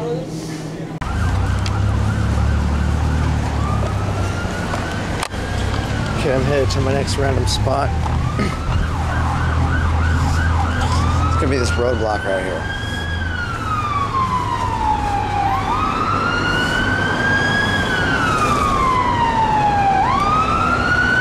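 Cars drive past on a busy street.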